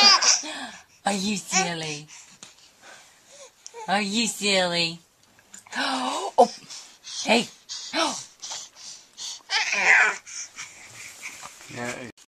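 A baby squeals and babbles close by.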